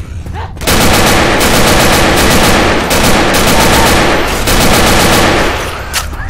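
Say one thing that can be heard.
A gun fires rapid bursts at close range.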